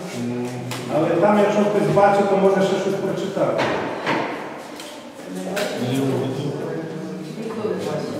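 A man speaks steadily into a microphone in a room with a slight echo.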